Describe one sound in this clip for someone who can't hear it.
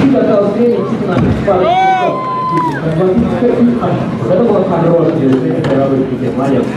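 Kick scooter wheels roll and clatter on a wooden ramp.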